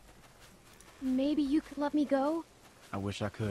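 A young girl asks something in a pleading voice.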